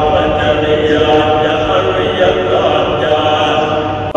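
A large crowd chants together in unison in an echoing hall.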